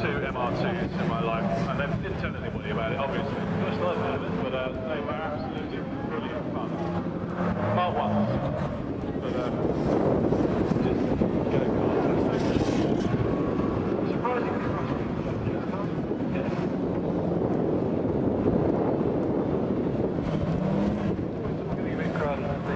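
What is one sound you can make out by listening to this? A car engine revs hard, rising and falling as the car slides around.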